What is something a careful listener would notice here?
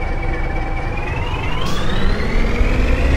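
A bus engine revs up with a rising whine.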